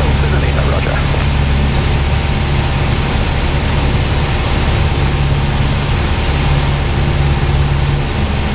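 Wind rushes over the outside of the plane.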